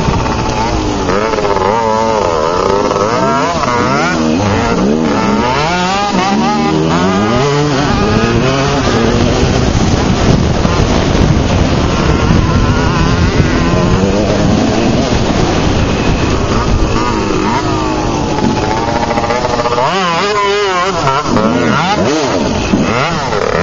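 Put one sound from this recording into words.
A small dirt bike engine revs up and down close by.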